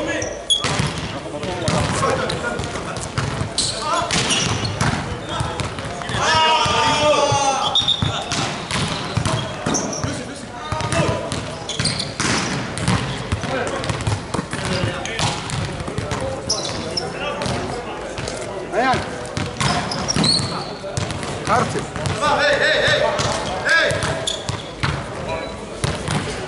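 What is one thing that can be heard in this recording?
Men shout and call out during play in a large echoing hall.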